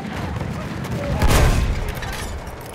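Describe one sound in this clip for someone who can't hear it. A heavy gun fires a loud shot.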